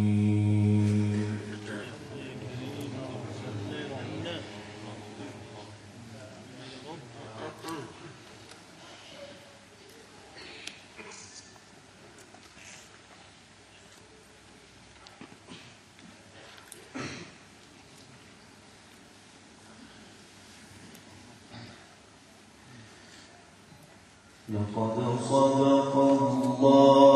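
A man chants a long melodic recitation through a microphone in an echoing hall.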